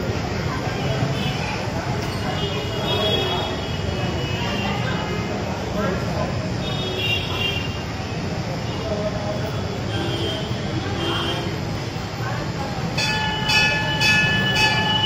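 Ceiling fans whir steadily overhead.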